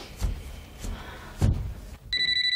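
Footsteps knock on stairs.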